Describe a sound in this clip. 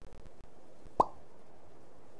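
A short electronic zap sounds as a glowing bolt flies.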